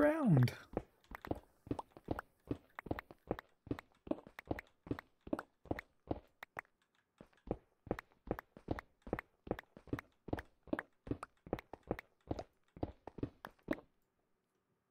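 A pickaxe chips at stone blocks in quick, steady knocks.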